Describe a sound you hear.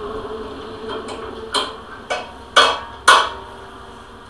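Metal parts click and clank as a hand works on a bracket.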